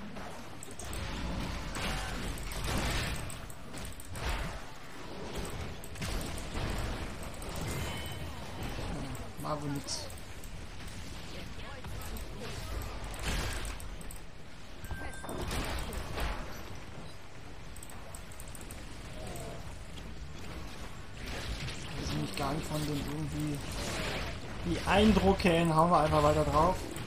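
Game battle effects crackle, blast and clash throughout.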